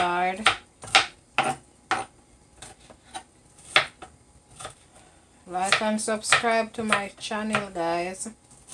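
A knife chops onion on a cutting board with sharp taps.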